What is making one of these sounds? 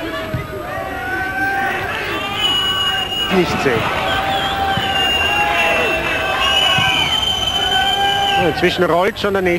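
A large crowd sings and chants in an open stadium.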